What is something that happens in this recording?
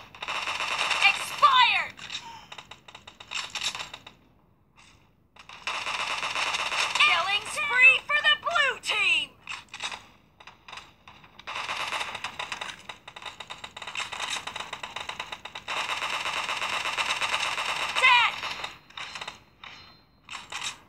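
Rapid bursts of game gunfire play through a small phone speaker.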